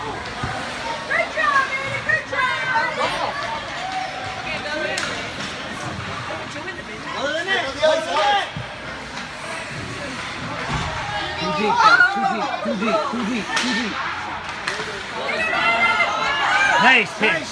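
Ice skates scrape on ice.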